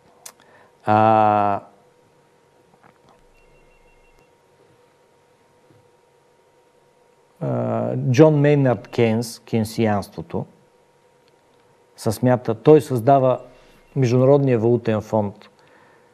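A middle-aged man speaks calmly and thoughtfully into a microphone, with pauses.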